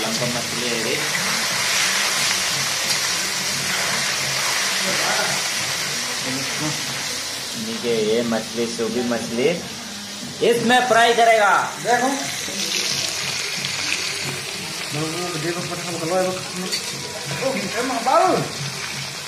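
Fish sizzles as it fries in hot oil.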